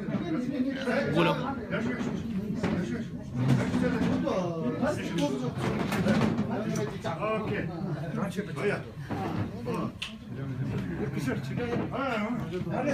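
Several men talk loudly over one another close by.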